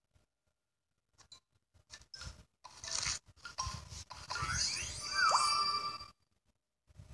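Bright game chimes and sparkling bursts ring out as candies pop.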